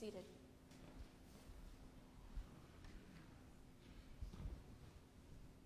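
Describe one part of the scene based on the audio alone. Footsteps thud softly on a hard floor.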